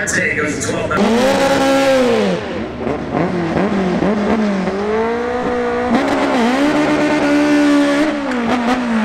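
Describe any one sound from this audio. A car engine revs up and down repeatedly, close by.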